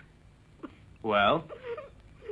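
A man cries out loudly.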